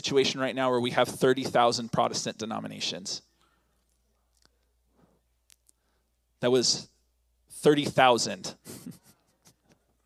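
A man speaks calmly into a microphone over loudspeakers in a large echoing hall.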